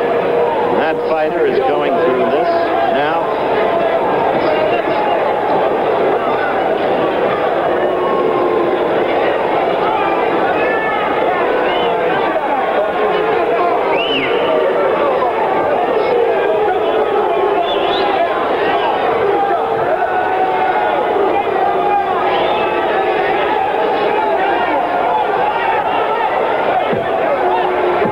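A large crowd murmurs and shouts throughout.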